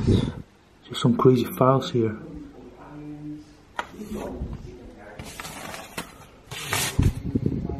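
Paper rustles as a hand handles stacks of documents.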